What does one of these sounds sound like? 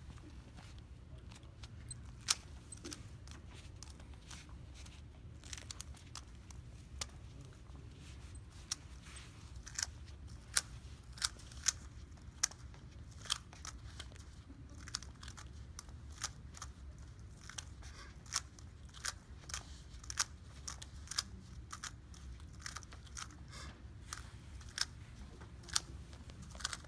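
Plastic puzzle cube pieces click and clack as they are turned quickly.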